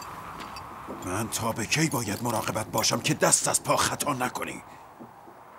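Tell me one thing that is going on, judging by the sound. An elderly man speaks forcefully, close by.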